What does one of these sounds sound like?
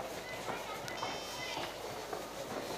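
A mobile phone beeps softly in a short run of tones.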